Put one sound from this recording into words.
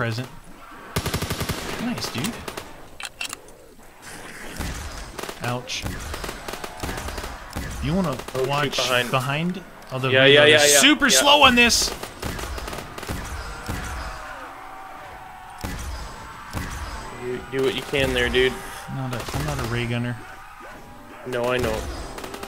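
Gunfire rattles in quick bursts.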